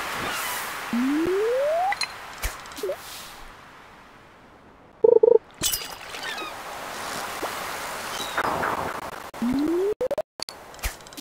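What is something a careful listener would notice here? A fishing line is cast with a quick rising whoosh.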